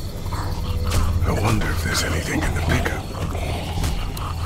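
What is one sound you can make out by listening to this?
A man speaks quietly.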